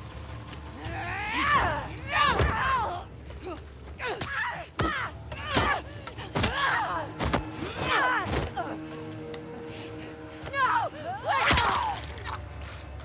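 A young woman grunts and shouts with effort, close by.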